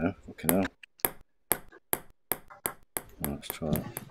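A table tennis ball clicks sharply back and forth in a quick rally.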